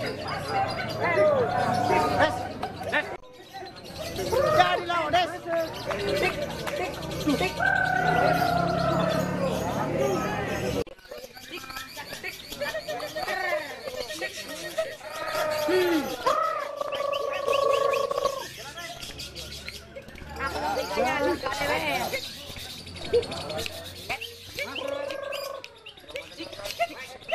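A lovebird chirps and whistles rapidly, close by.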